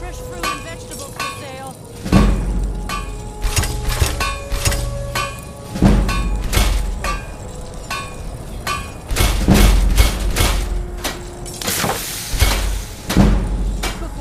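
A hammer strikes metal on an anvil.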